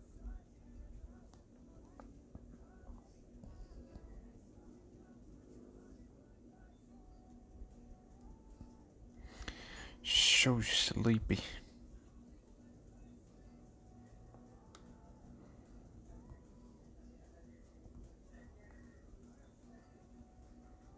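Soft game menu music plays quietly.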